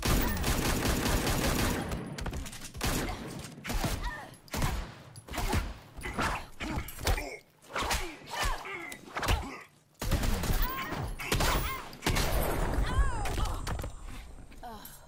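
Punches and kicks land with heavy thuds and cracks in a fight.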